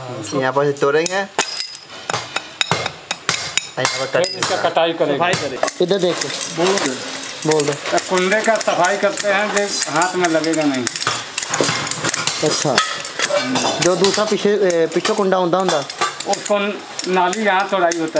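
Metal shears snip and scrape against metal castings.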